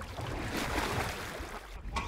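Water splashes around a wakeboarder falling into a lake.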